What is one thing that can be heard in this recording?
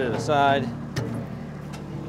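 Metal tongs clank against a log.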